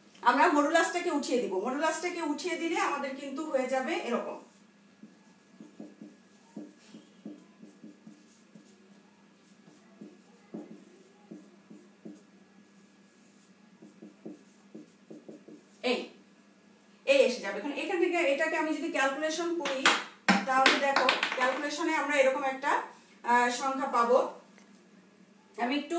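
A woman explains calmly and clearly, close by.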